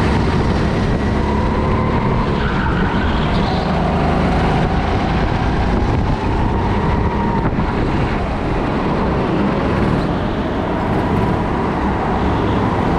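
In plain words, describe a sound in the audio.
An electric go-kart whines and rumbles up close as it speeds around the track.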